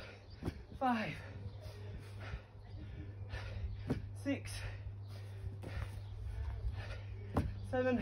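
Feet thud on grass as a man jumps and lands.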